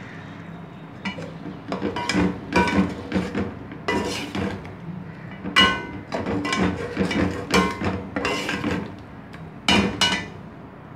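A metal spatula scrapes and stirs food in a metal pot.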